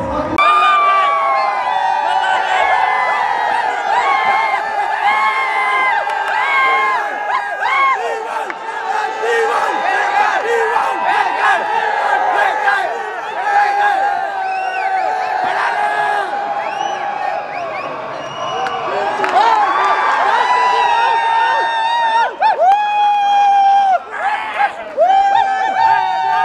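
A large crowd of young men cheers and chants loudly.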